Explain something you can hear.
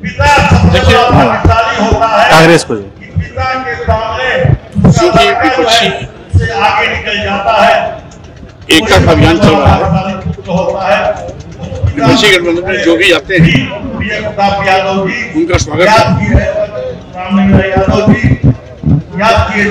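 A middle-aged man speaks forcefully into close microphones outdoors.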